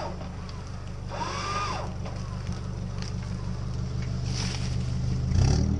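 Branches scrape against a vehicle's body.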